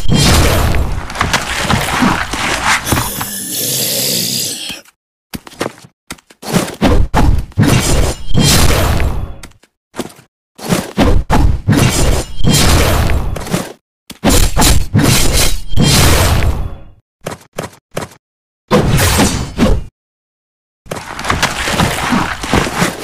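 Sword slashes whoosh and clang in quick bursts.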